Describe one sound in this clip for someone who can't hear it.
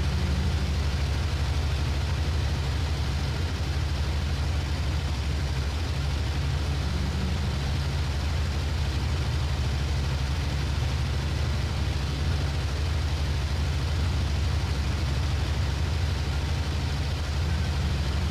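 Wind rushes past a cockpit canopy.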